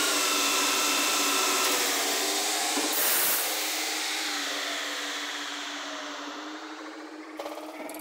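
A lathe spindle whirs loudly, then slowly winds down.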